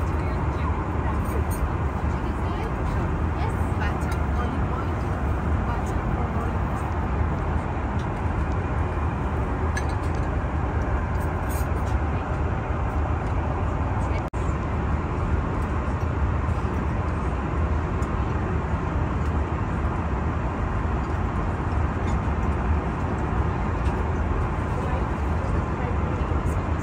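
A steady, deep engine drone fills an aircraft cabin in flight.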